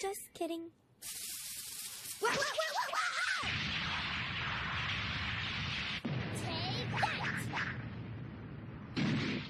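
A rushing whoosh of a dust cloud sweeps past.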